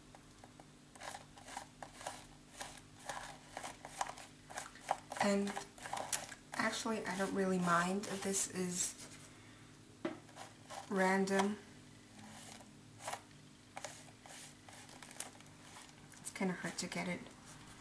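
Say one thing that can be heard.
A palette knife scrapes and taps on paper.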